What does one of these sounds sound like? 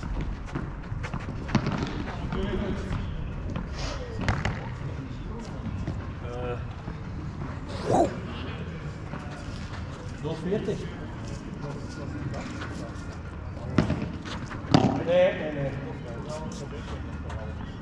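Padel balls pop off rackets in a quick back-and-forth rally.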